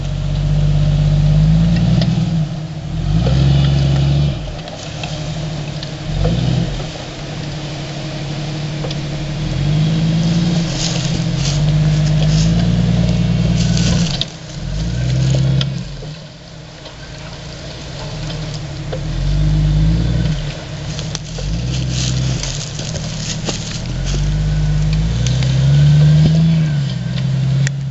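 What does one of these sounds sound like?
A car engine revs up and down.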